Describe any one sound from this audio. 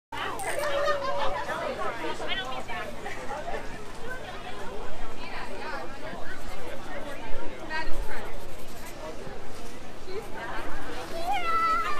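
A felt-tip marker squeaks softly across paper.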